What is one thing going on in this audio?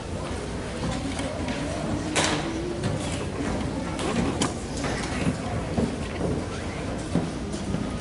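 A large school band plays together in an echoing gym.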